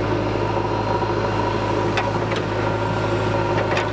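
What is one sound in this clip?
Soil and clods tumble from a digger bucket.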